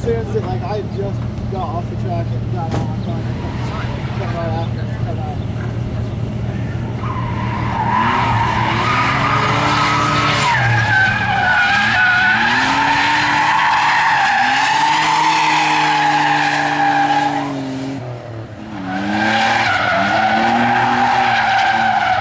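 A car engine revs hard, rising and falling.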